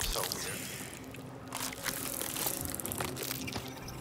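A fleshy creature squelches wetly as it stirs and crawls.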